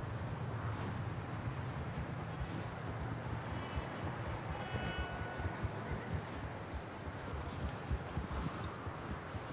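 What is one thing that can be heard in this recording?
Horse hooves thud and crunch through deep snow.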